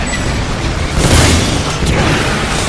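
A rocket launches with a loud whoosh and roar.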